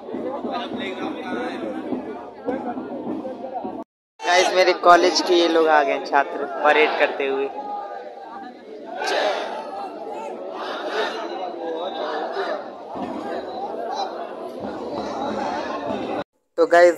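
A large crowd of men murmurs and chatters outdoors.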